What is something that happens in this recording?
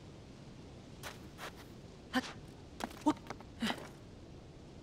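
Quick thuds and scrapes sound as a figure climbs up a rock.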